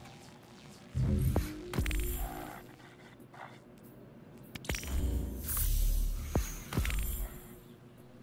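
Short electronic chimes and whooshes sound as notifications pop up.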